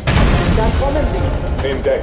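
A loud blast roars.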